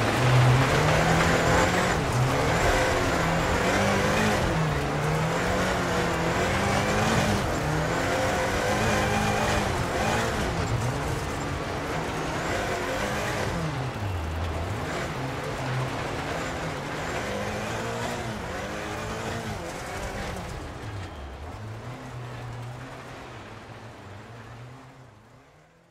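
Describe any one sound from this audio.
A car engine revs hard, rising and falling as gears change.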